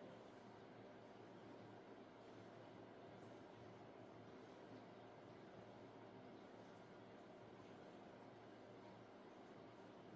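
Thick paint pours softly from a cup.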